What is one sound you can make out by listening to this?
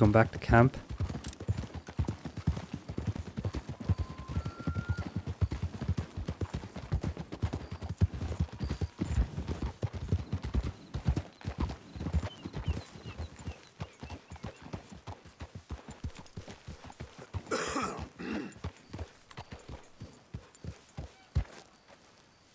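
Horses' hooves thud quickly on a dirt track.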